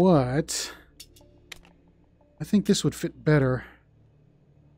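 Metal parts of a pistol click and clack.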